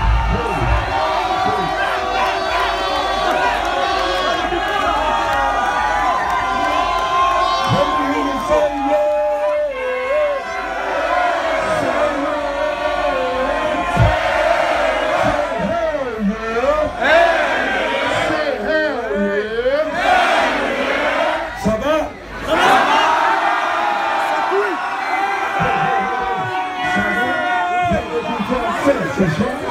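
A man raps loudly into a microphone, heard through loudspeakers.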